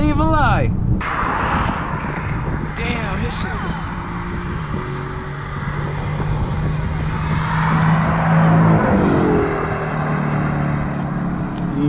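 Traffic rushes past on a road outdoors.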